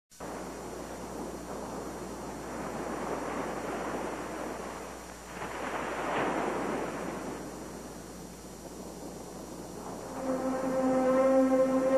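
Ocean waves surge and break in swelling rushes.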